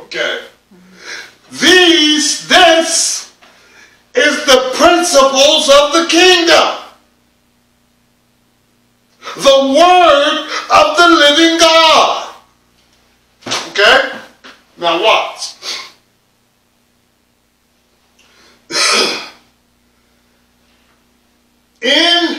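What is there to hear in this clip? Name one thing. A middle-aged man preaches with animation, pausing between phrases.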